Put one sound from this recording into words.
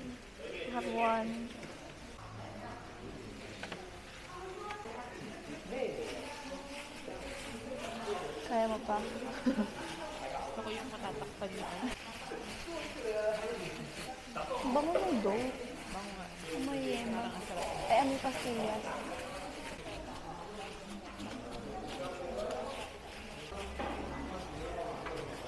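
Plastic gloves rustle as hands press a mould.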